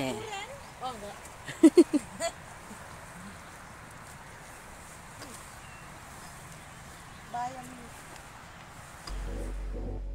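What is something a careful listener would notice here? Leaves rustle as weeds are pulled up by hand.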